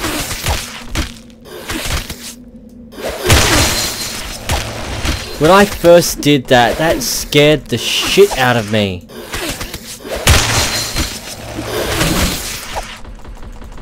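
A sword swooshes through the air.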